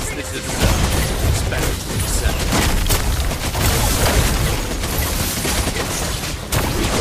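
Game spell effects crackle and boom in a busy battle.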